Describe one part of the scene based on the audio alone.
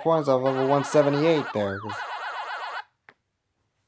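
A descending electronic jingle plays.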